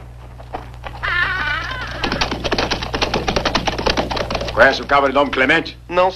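Horses' hooves clop on a dirt road.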